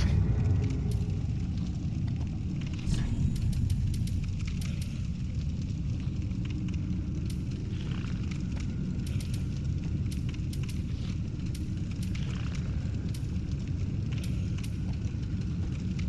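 Soft game menu clicks sound again and again as items are selected.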